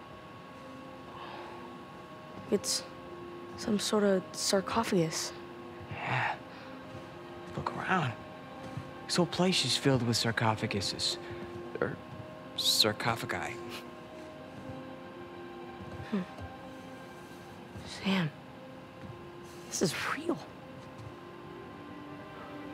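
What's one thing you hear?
A young man speaks quietly in wonder.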